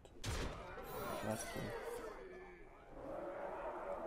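A sparkling chime rings out in a burst of magic.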